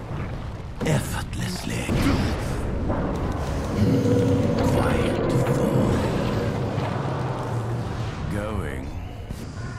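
Spells and attacks clash and burst in a game.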